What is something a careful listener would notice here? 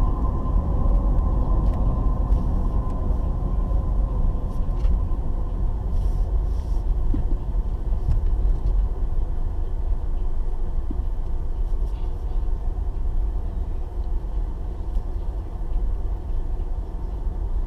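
A car engine hums steadily from inside the cabin as the car drives along.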